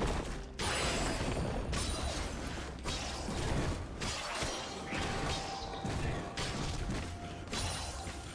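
Game spell effects whoosh and crackle as characters fight.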